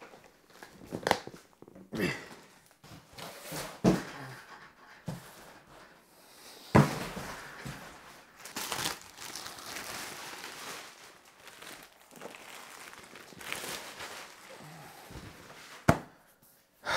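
A heavy box knocks and thuds.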